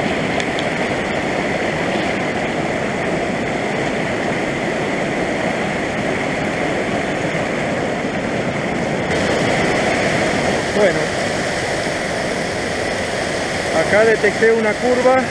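A rushing stream churns loudly over rocks close by.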